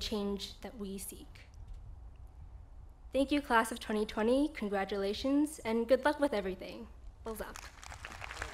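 A young woman speaks calmly into a microphone over loudspeakers outdoors.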